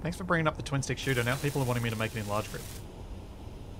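A welding torch hisses and crackles with sparks.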